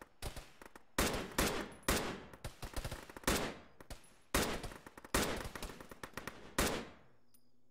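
Rifle shots crack out in short bursts.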